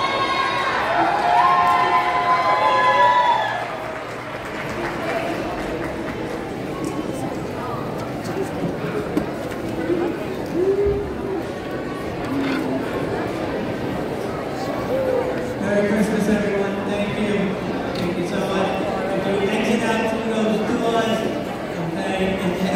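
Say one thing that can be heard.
A crowd of people chatters steadily.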